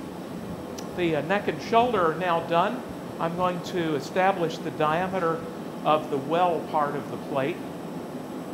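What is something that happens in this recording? An elderly man speaks calmly through a clip-on microphone.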